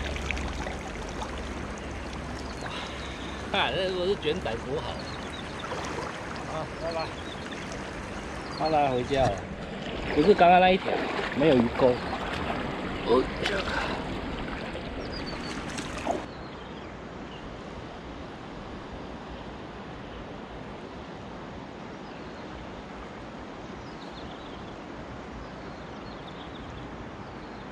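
A river flows and babbles steadily.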